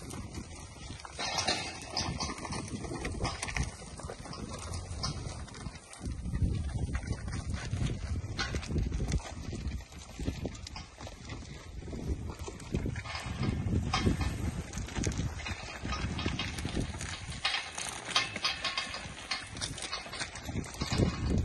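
Cattle hooves shuffle on dry dirt.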